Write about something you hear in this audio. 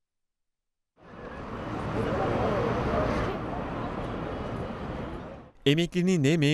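A crowd murmurs in a busy street outdoors.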